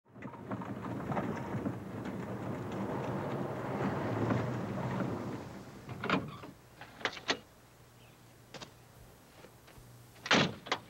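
A car engine rumbles steadily.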